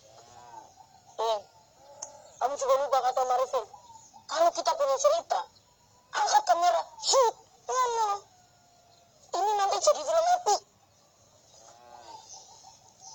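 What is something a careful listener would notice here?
A second boy answers calmly close by.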